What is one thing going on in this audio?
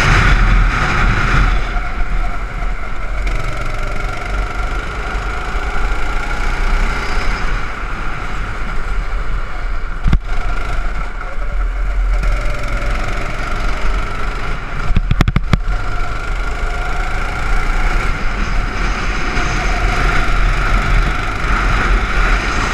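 A kart engine buzzes loudly up close, rising and falling in pitch as it speeds up and slows down.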